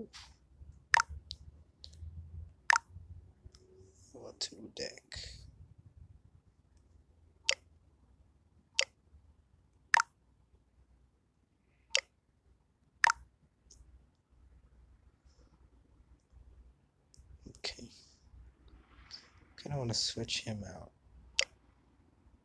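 Clicks sound sharply as cards are tapped.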